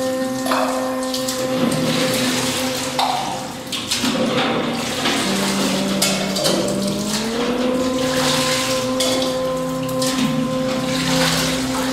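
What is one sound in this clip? Water pours and splashes onto stone.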